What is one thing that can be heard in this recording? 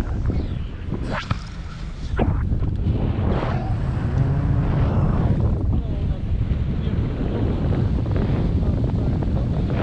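Strong wind roars against a microphone.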